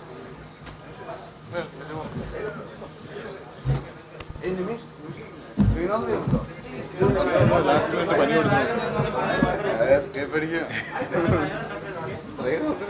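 A young man speaks calmly into microphones.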